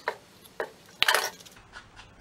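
A plastic bottle is set down on a hard surface with a knock.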